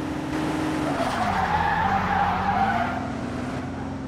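Tyres screech on the road surface.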